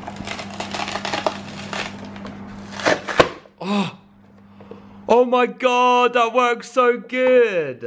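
A plastic tub of chopped onion rattles as it is handled.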